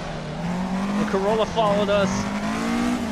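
Tyres squeal briefly through a corner.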